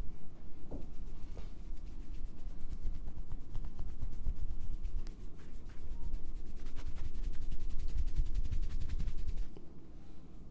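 Fingers rub and scratch through hair close up.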